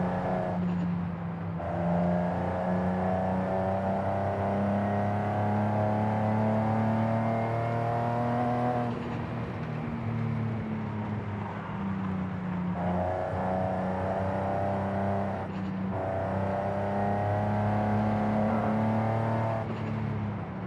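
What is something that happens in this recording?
A car's engine drops in pitch briefly as the driver shifts gears.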